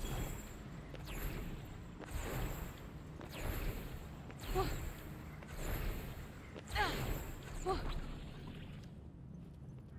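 Magical bursts whoosh past in quick repeated waves.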